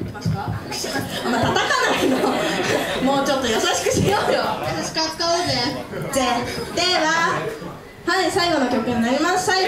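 Young girls sing together into microphones over loudspeakers.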